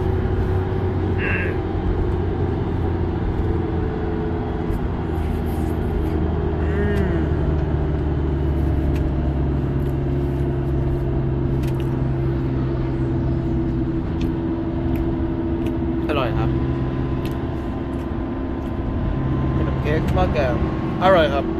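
A vehicle's engine hums steadily from inside.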